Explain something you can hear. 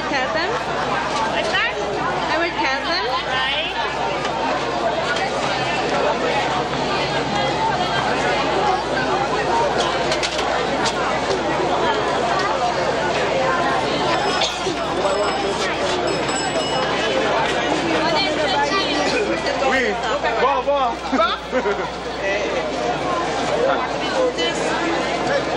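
A crowd of voices chatters all around outdoors.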